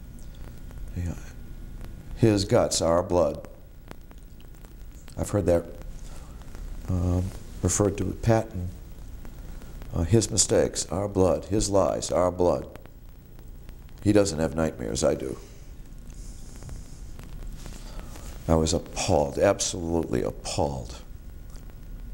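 A middle-aged man speaks calmly and close by, with pauses between phrases.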